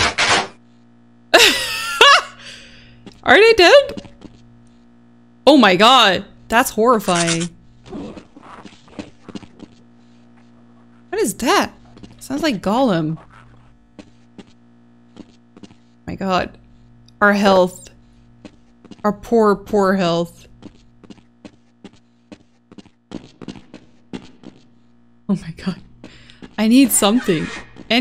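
A young woman talks with animation close to a microphone, in short bursts.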